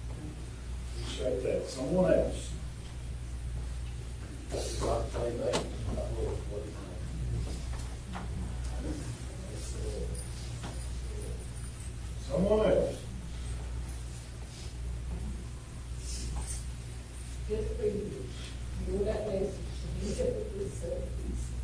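A man prays aloud in a slow, calm voice, heard from across a small echoing hall.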